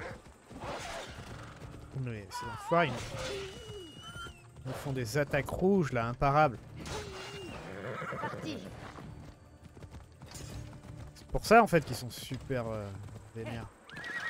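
A horse's hooves thud at a trot over grass and stony ground.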